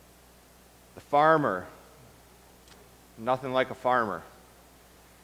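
A man speaks slowly and with feeling through a microphone in an echoing room.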